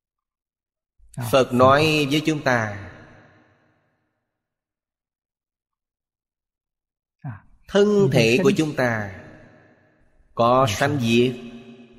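An elderly man speaks calmly and warmly into a close microphone, with long pauses.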